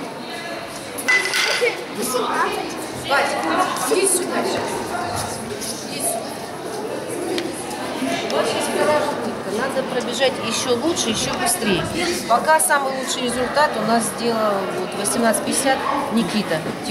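A woman talks calmly to children close by.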